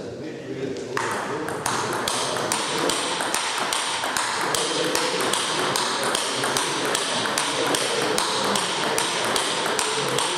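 A table tennis ball clicks back and forth in a quick rally.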